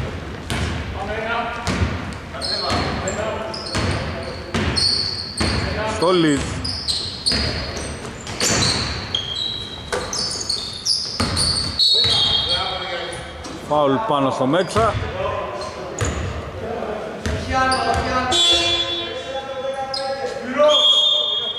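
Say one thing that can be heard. A basketball bounces with hollow thuds on a wooden floor.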